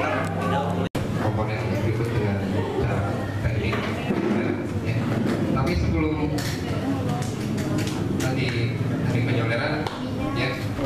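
A young man speaks into a microphone, heard over loudspeakers.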